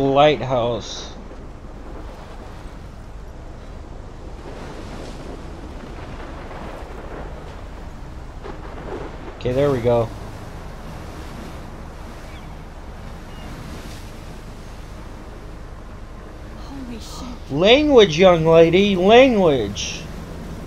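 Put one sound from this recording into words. Storm wind roars steadily.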